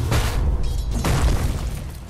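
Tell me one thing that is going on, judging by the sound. Fiery magic blasts whoosh and crackle.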